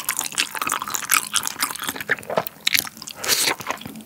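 A man slurps noodles.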